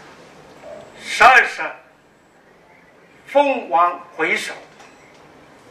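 An older man speaks calmly into a clip-on microphone in short phrases.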